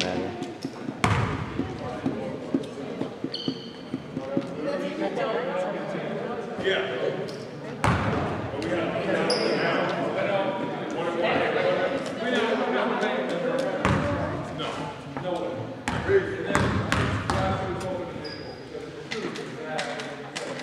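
A crowd of young spectators chatters and cheers.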